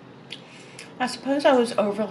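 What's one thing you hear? A young woman speaks close to a microphone at the end.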